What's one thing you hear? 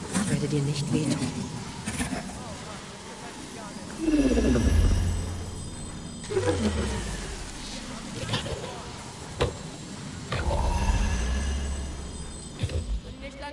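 Crackling magic blasts boom and whoosh in bursts.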